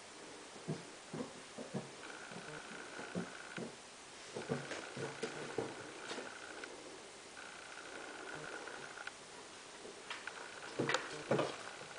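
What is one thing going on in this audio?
A kitten's paws thump softly on wooden stairs.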